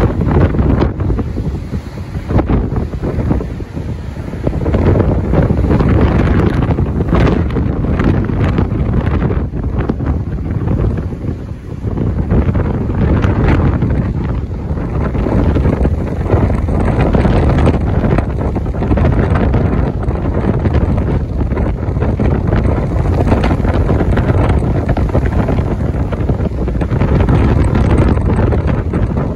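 Strong wind buffets loudly outdoors.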